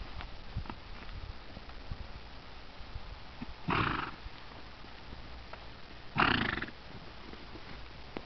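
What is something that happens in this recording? Hooves thud softly on dirt as a horse walks.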